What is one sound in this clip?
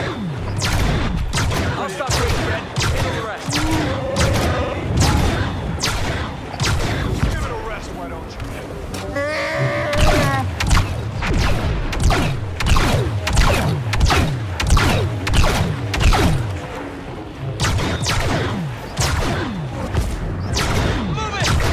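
Laser bolts zip and hiss past overhead.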